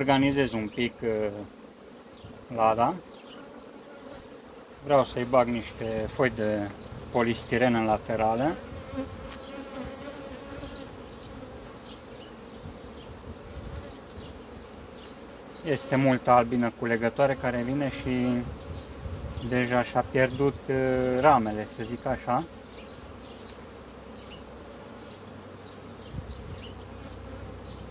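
Honeybees buzz over an open hive.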